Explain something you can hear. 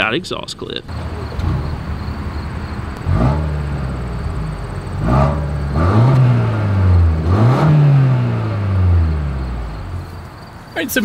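A car engine idles and revs up several times.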